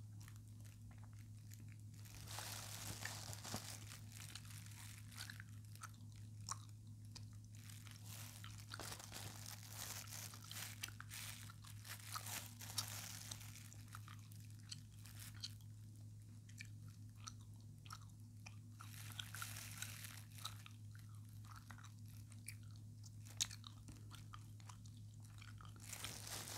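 Tissue paper rustles and crinkles close to a microphone.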